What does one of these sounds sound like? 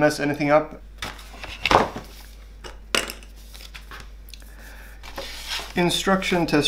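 Paper sheets rustle as they are handled.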